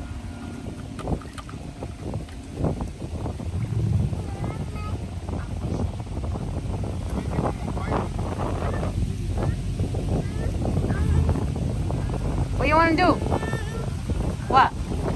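Wind rumbles across an outdoor microphone.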